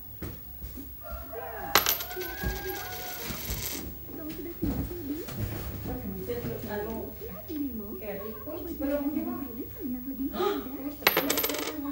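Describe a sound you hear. A toddler babbles and talks up close.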